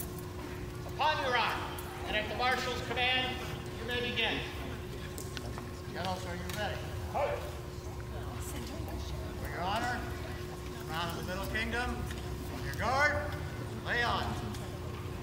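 A man nearby calls out loudly in a large echoing hall.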